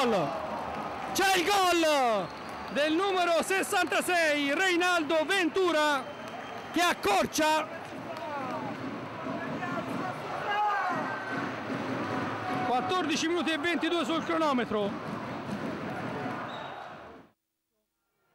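A large crowd cheers and chants in an echoing hall.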